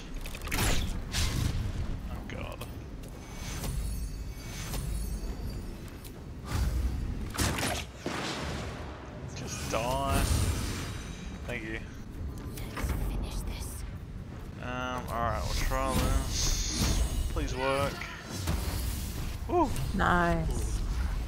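Magic blasts crack and boom in bursts.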